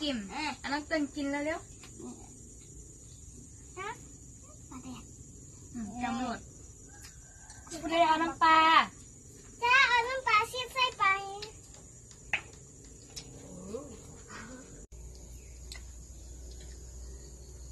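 Dishes clink softly as children eat.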